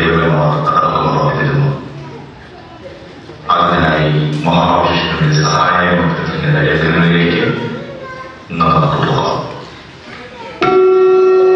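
A man speaks into a microphone in an echoing hall, with pauses.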